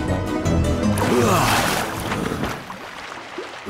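Water splashes loudly as a swimmer bursts up.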